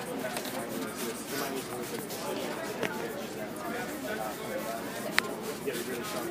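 A spray bottle spritzes liquid in short bursts.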